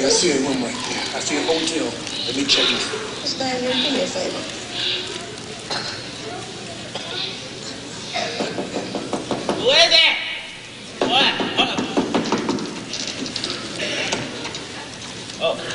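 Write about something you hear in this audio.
A man speaks with expression on a stage, heard from a distance in a large hall.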